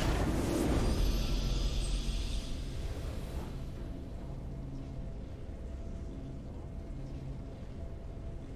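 A triumphant game fanfare plays and fades.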